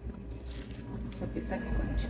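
Coffee beans rattle as a hand stirs them.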